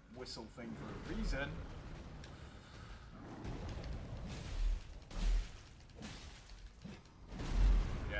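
A sword strikes a huge beast with heavy thuds.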